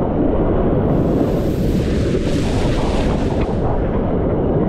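Water splashes and sprays as a wave breaks.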